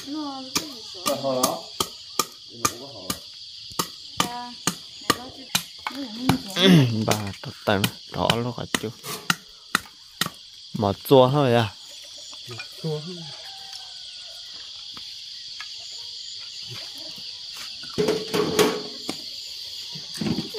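A knife chops into wood with sharp, quick knocks.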